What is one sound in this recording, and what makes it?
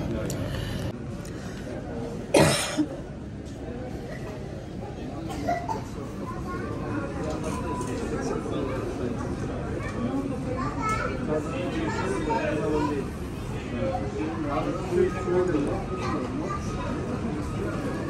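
A shuttle bus engine idles outdoors.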